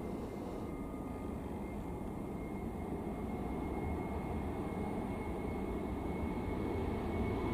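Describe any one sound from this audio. Jet engines roar loudly as an airliner takes off and climbs.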